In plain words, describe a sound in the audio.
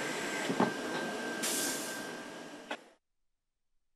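A machine whirs and rattles as it moves sheets of paper.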